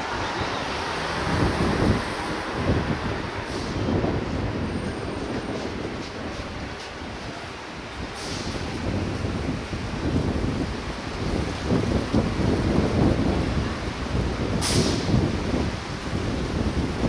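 Traffic rumbles past on a city street outdoors.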